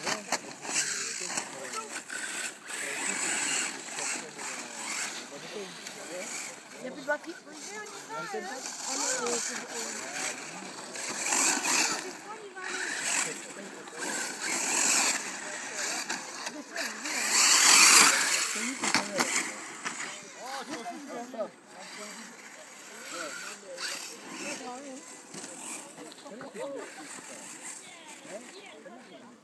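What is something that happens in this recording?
Small electric motors of remote-control cars whine, rising and falling in pitch as the cars speed up and slow down.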